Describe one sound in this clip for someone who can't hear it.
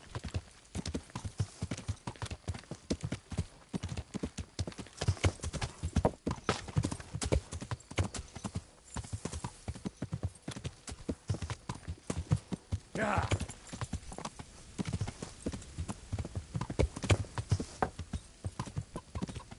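Horse hooves thud steadily on a soft dirt path.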